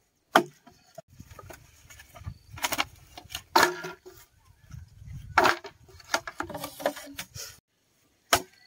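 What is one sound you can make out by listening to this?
Bamboo poles clatter and knock together.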